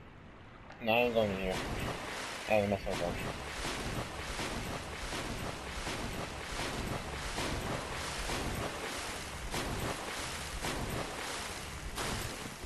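Water splashes steadily as someone wades through it.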